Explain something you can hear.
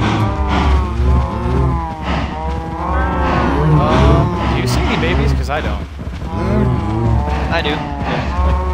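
Many cows moo loudly over one another, close by.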